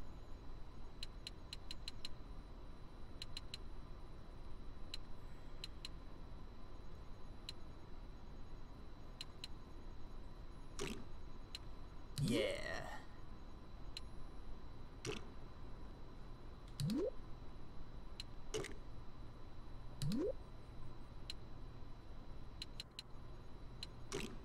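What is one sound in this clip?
Soft menu clicks tick as a selection moves along a row.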